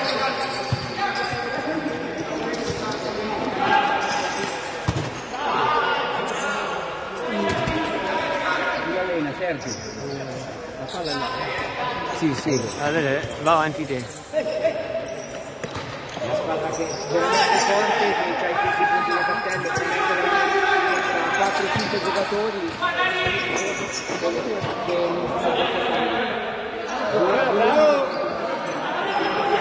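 Men shout to one another in a large echoing hall.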